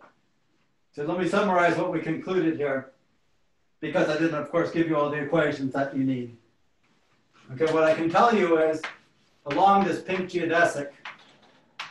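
A man lectures calmly, close by in a small room.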